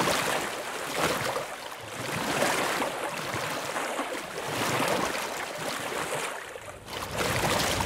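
Water splashes as a creature swims.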